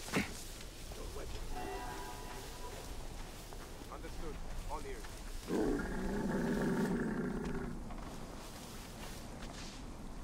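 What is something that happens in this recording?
A person creeps through tall grass, brushing and rustling the stalks.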